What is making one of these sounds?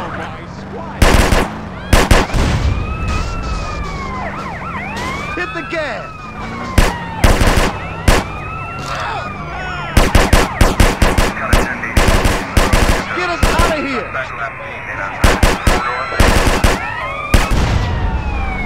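Cars crash loudly again and again with heavy thuds.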